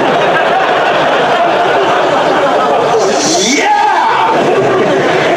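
A young man laughs loudly through a loudspeaker.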